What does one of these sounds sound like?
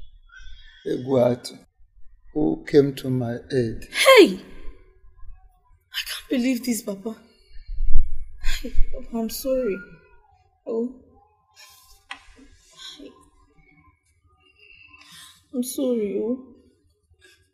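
A young woman speaks tearfully and pleadingly, close by.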